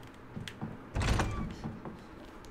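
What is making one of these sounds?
A door swings open with a loud creak.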